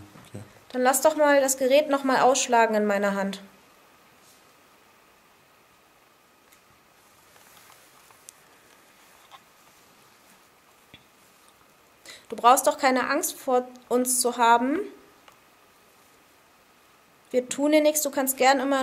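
A woman talks close by, in short bursts with pauses between.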